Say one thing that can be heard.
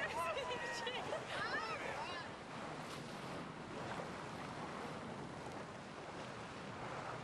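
Waves slap and splash.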